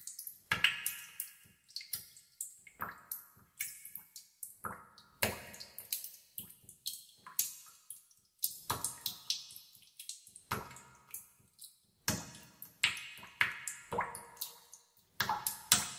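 Water drops plop one after another into still water.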